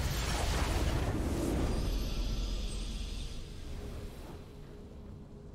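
A triumphant game fanfare swells loudly and then fades away.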